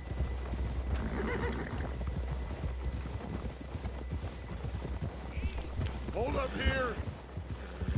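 A man speaks briefly in a calm voice nearby.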